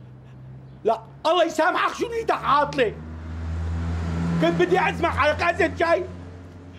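An elderly man talks loudly and exclaims close by.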